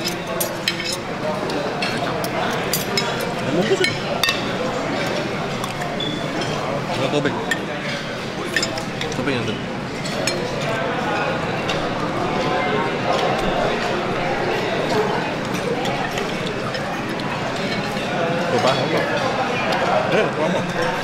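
Metal cutlery clinks against a plate.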